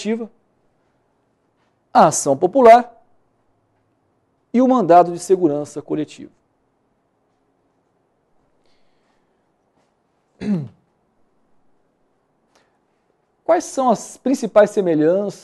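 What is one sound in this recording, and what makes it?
A man speaks calmly and clearly into a close microphone, in short bursts with pauses.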